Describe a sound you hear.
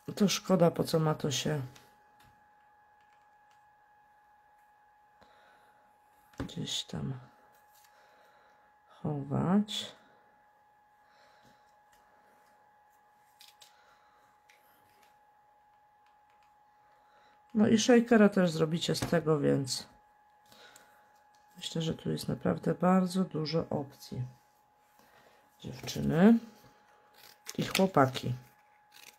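Paper rustles softly as pieces are handled and pressed down.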